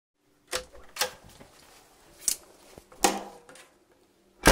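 A door latch clicks and rattles.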